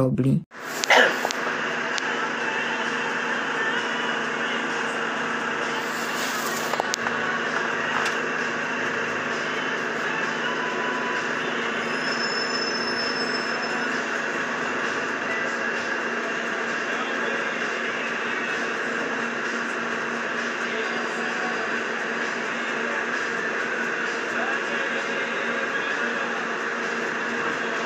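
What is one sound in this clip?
A bus engine hums steadily, heard from inside the bus.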